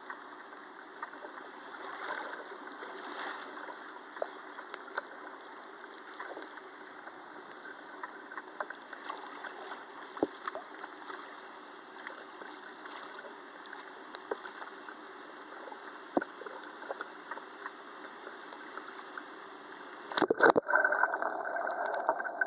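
A river rushes and gurgles close by.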